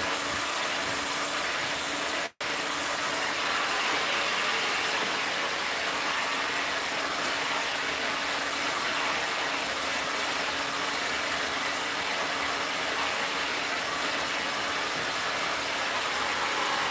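A hair dryer blows with a steady, loud whir close by.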